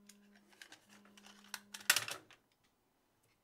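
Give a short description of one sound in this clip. A screwdriver clicks and scrapes against metal.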